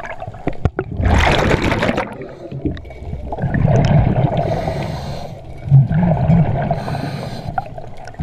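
A diver breathes through a scuba regulator underwater, with exhaled bubbles rushing and gurgling.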